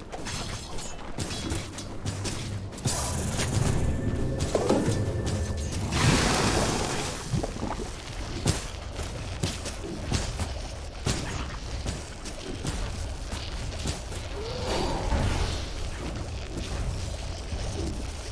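Game weapons clash and strike in quick hits.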